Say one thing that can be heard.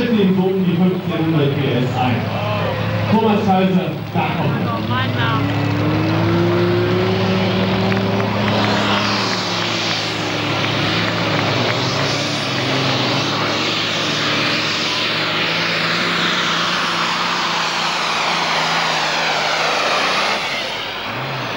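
Tyres churn and scrape through loose dirt.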